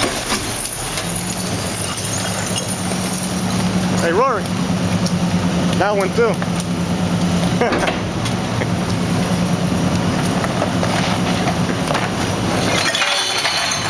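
A garbage truck's hydraulic compactor whines and grinds as it crushes trash.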